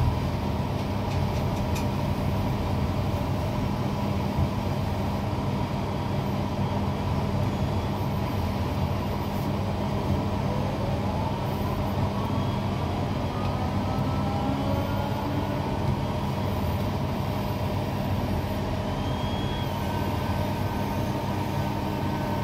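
A crane motor hums steadily close by.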